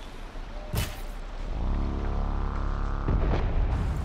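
An arrow strikes a metal creature with a sharp thud.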